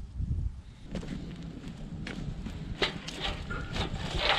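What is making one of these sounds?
A wood fire crackles and roars.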